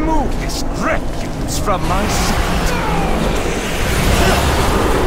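Spell effects whoosh and crackle during a busy game battle.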